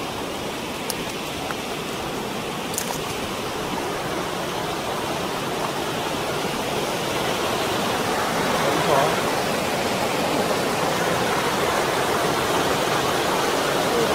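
A stream rushes over rocks, growing louder.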